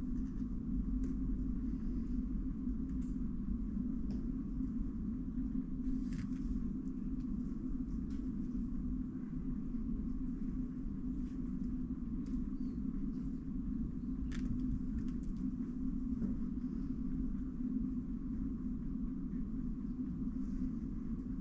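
Plastic puzzle cubes click and rattle softly as they are handled.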